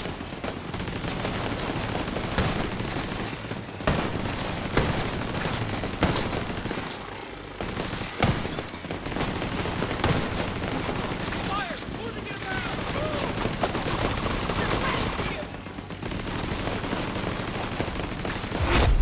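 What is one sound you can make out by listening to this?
Gunfire rattles in bursts from a distance.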